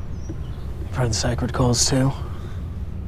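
A young man speaks tensely nearby.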